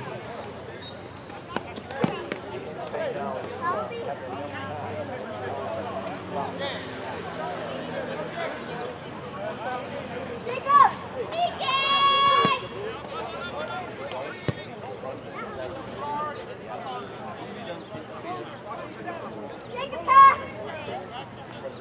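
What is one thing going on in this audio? A crowd of spectators chatters nearby outdoors.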